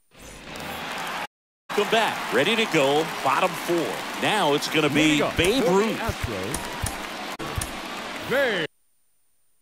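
A large stadium crowd cheers and murmurs.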